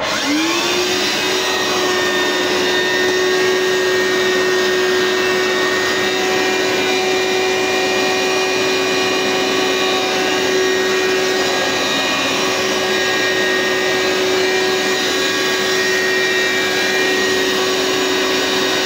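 A vacuum cleaner motor whirs up to speed and runs with a loud, steady drone.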